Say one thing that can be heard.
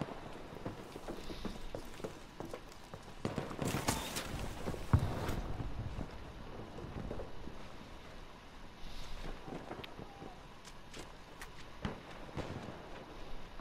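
Gunshots crack and boom in the distance.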